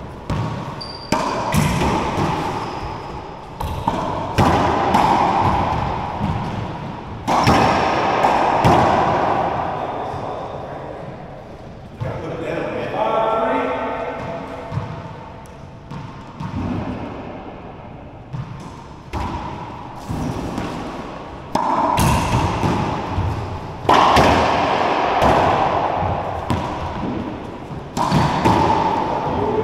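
A racquetball smacks hard against the walls of a large echoing court.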